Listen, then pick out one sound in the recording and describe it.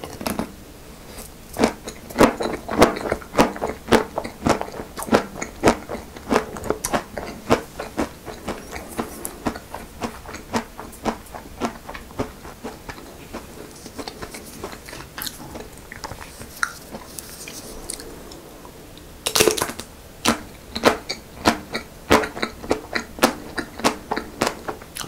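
A man chews ice cream with crisp, crackling bites close to a microphone.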